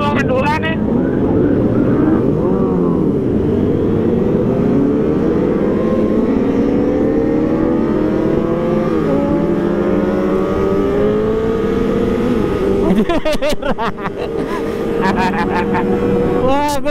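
Wind buffets loudly against the rider.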